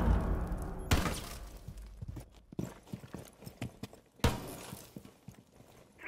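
A pistol fires single sharp shots.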